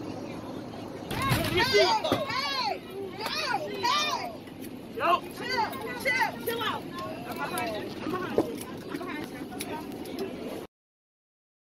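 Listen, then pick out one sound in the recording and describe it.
Men shout and yell loudly nearby.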